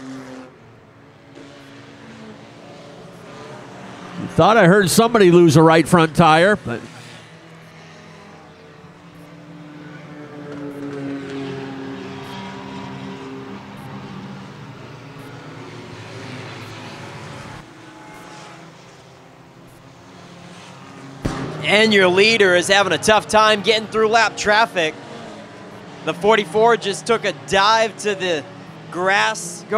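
Race car engines roar steadily around a track outdoors.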